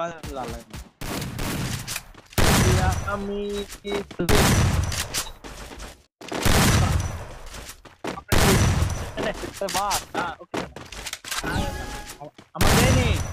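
Video game shotgun blasts go off.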